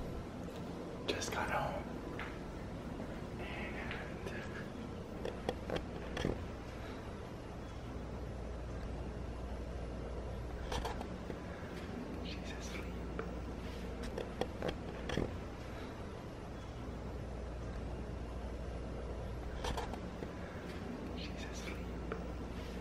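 A young man whispers close to the microphone.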